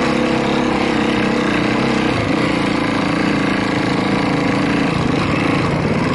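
A dirt bike engine revs loudly up close.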